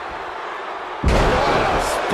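A heavy thud sounds as a wrestler slams his opponent to the mat.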